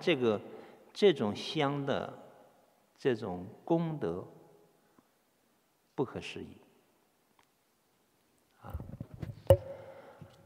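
A man chants slowly into a microphone in an echoing hall.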